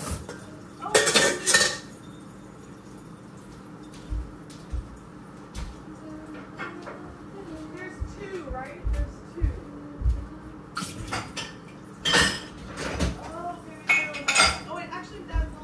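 Dishes clatter and clink in a sink.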